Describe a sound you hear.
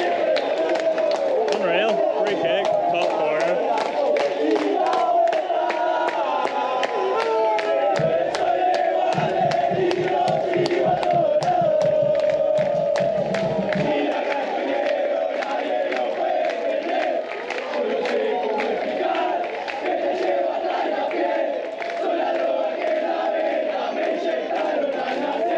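A crowd of fans sings and chants loudly.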